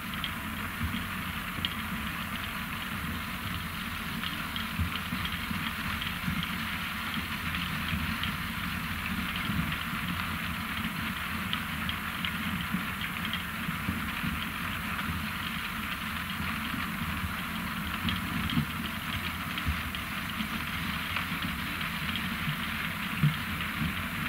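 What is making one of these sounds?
A harvester's engine rumbles steadily nearby.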